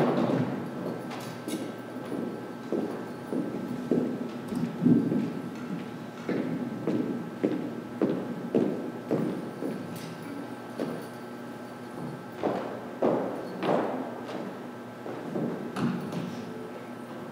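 An orchestra plays a rhythmic tune in a large echoing hall.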